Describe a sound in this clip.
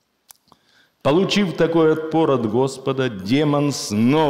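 An elderly man chants aloud in a melodic voice close by.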